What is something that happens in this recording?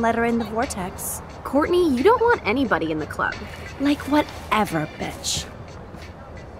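Young women trade remarks sharply at close range.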